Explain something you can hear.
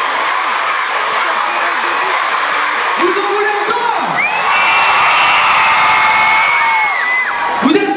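A large crowd cheers and screams loudly throughout.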